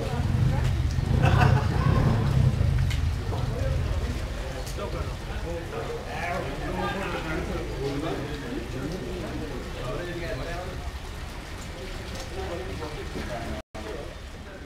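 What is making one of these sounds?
A crowd of men talk and chatter outdoors.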